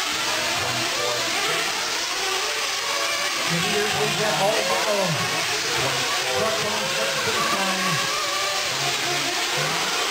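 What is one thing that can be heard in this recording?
Small remote-control car motors whine and rev, rising and falling.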